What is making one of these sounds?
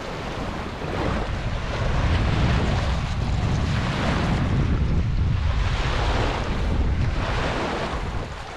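Wind gusts outdoors.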